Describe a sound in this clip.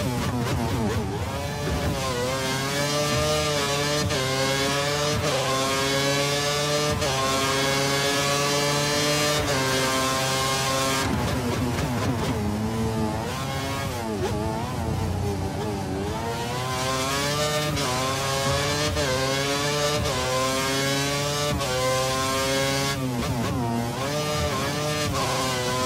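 A racing car engine screams loudly, rising in pitch as it speeds up and dropping sharply as it slows.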